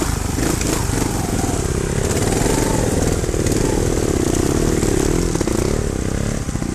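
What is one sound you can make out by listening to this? A second dirt bike engine whines nearby as it climbs.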